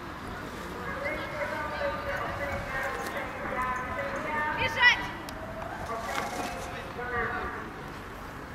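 A young woman calls out outdoors, some distance away.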